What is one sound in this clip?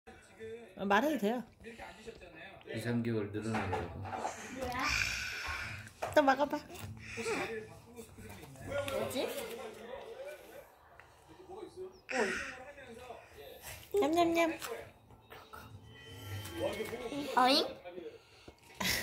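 A little girl talks close by in a high, chatty voice.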